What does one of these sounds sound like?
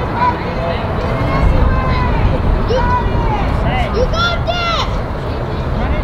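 Girls shout and cheer from across a field outdoors.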